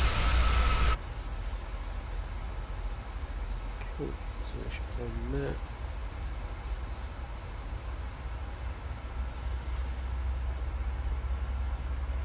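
A low, steady engine hum fills a cockpit in flight.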